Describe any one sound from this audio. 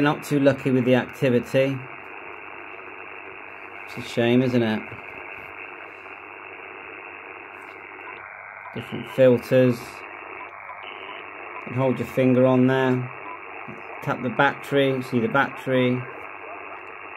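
A man's voice talks in short bursts through a crackly radio loudspeaker.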